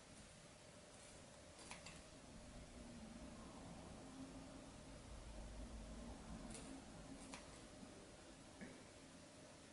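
Scissors snip through fabric with short crisp cuts.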